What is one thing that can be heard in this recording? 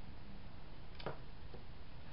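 A plastic cup knocks down onto a table.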